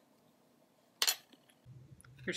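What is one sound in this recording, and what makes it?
Apple peel drops into a metal bowl with a light ringing knock.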